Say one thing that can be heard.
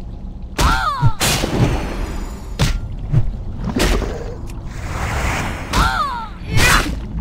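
A creature gurgles and shrieks as it is hit.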